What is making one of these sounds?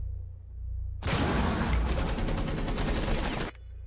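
A rifle fires rapidly in a long burst.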